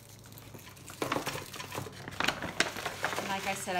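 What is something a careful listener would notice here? Paper gift bags rustle and crinkle as they are handled.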